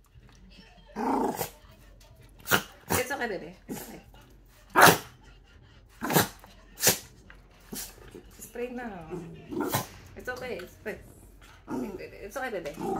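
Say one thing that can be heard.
A spray bottle hisses in short bursts.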